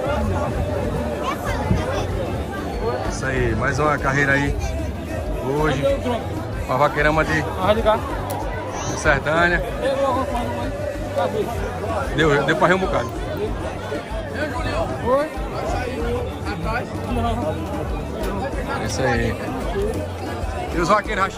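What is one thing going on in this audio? Several men talk and call out nearby.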